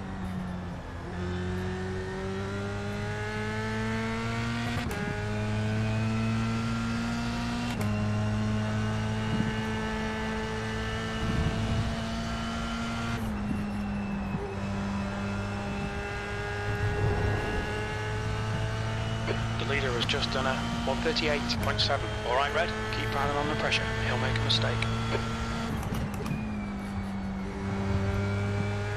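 A racing car engine drones steadily, its pitch climbing and then dropping with each gear change.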